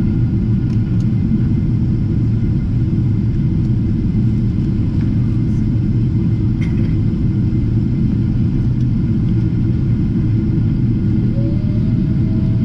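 Jet engines roar with a steady, deep drone.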